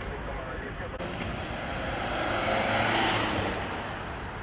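A car passes close by with a rising and fading whoosh.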